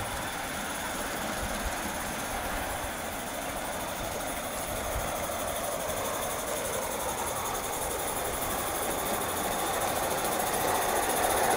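A model train rumbles and clatters steadily along its track, growing louder as it nears.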